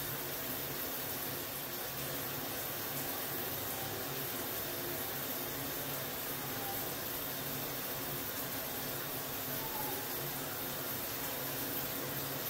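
Water runs from a hand shower and splashes steadily into a bathtub.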